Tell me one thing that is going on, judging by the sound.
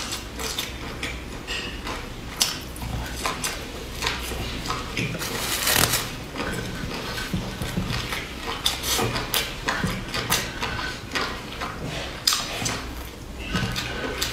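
A young woman chews crispy flatbread with loud crunching close to a microphone.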